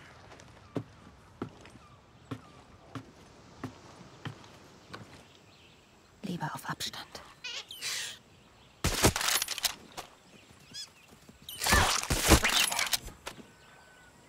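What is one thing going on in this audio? Footsteps tread steadily on dirt and wooden boards.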